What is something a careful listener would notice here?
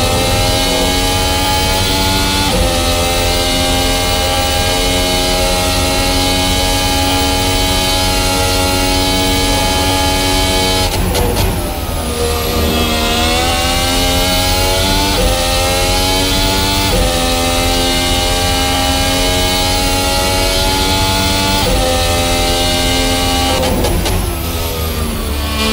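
A racing car engine screams at high revs, rising in pitch and dropping sharply with each gear change.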